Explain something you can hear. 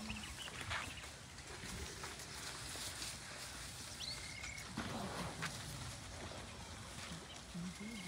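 A herd of elephants shuffles along a paved road.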